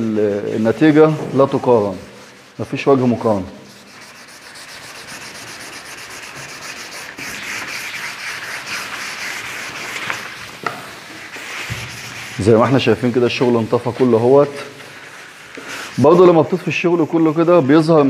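Hands rub and scrub over a wooden surface with a soft, steady swishing.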